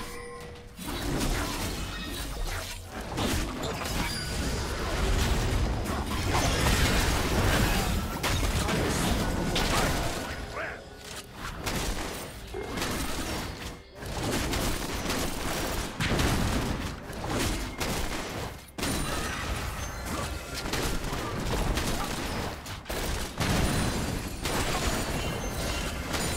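Fantasy battle sounds of spells and blows clash in a game.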